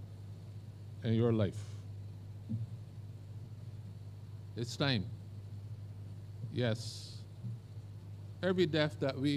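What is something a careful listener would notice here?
An elderly man speaks slowly and solemnly through a microphone, with long pauses.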